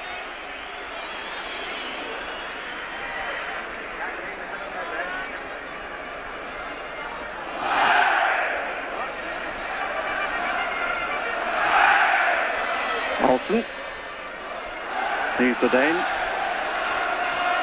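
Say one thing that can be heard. A large stadium crowd roars and chants steadily, swelling at times.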